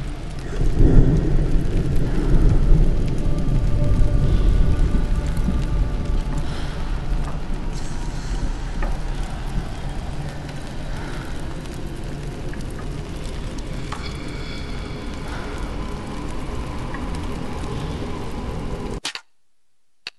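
A fire crackles and rumbles low nearby.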